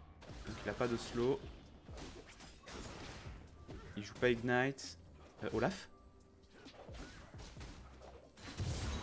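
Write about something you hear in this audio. Game sound effects of clashing blows and spells play.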